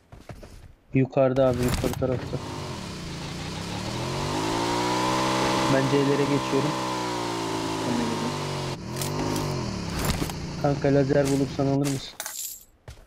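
A motorbike engine revs and drones.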